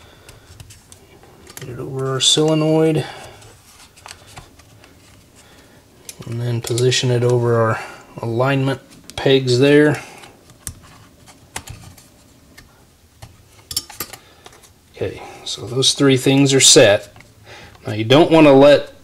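Small metal parts of a carburetor click and tap as they are handled.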